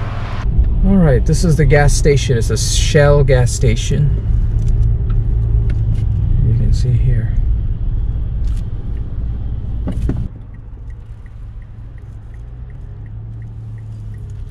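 A car engine hums low, heard from inside the cabin.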